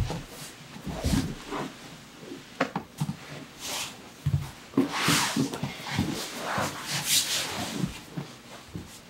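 A man explains calmly and steadily, close to a microphone.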